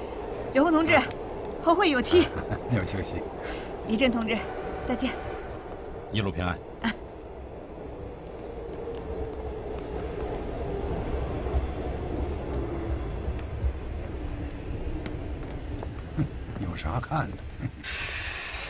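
A man speaks warmly up close.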